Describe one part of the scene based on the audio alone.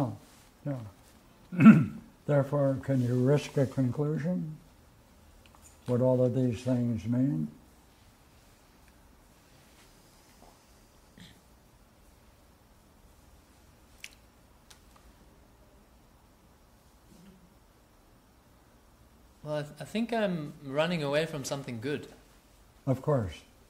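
An elderly man speaks calmly and slowly, with long pauses.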